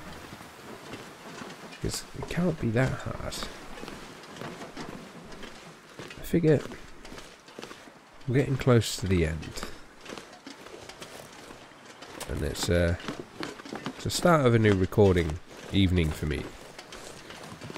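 Footsteps thud on wooden stairs and planks.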